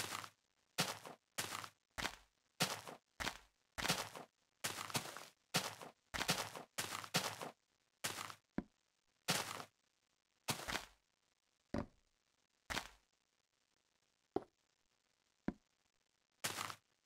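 Footsteps thud on grass and sand.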